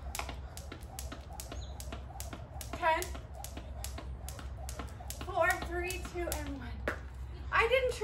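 A jump rope slaps rhythmically on a hard floor.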